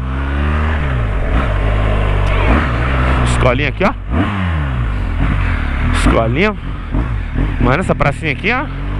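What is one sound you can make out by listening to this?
A motorcycle engine hums and revs up and down close by.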